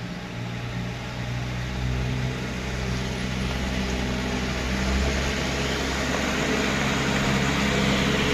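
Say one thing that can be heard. A bus engine rumbles steadily as it drives closer, growing louder.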